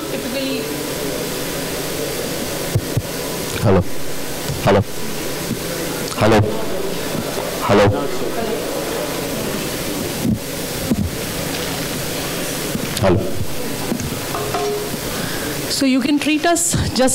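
A woman speaks calmly into a microphone over a loudspeaker system.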